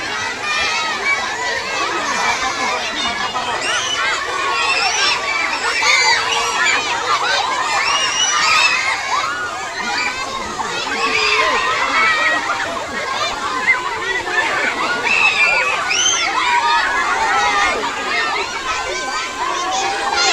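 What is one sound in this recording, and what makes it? A large crowd of children shouts and cheers excitedly outdoors.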